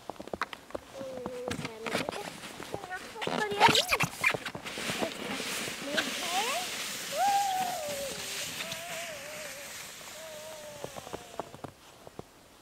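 A young child shouts with excitement.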